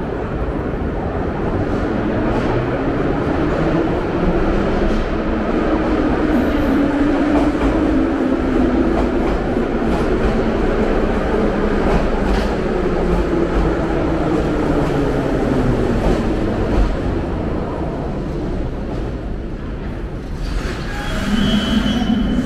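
A subway train rumbles loudly into an echoing station and slows to a stop.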